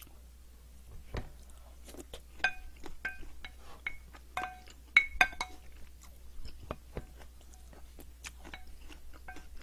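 A young woman chews food close up, with wet smacking sounds.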